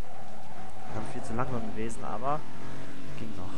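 Car tyres screech briefly while sliding through a turn.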